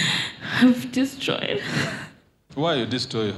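A woman speaks close to a microphone with emotion.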